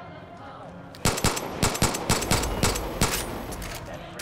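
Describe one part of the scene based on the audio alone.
A pistol fires a rapid series of sharp gunshots.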